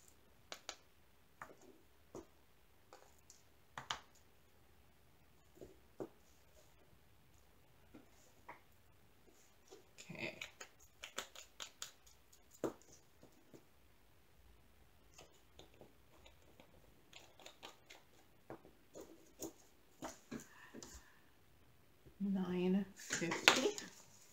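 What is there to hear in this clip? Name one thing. Small plastic containers click and tap on a table.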